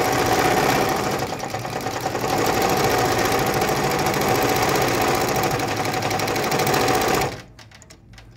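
An embroidery machine whirs and taps rapidly as its needle stitches, then stops.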